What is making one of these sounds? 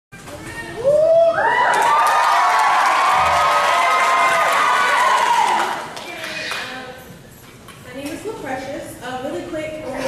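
A young woman sings into a microphone in a large, echoing hall.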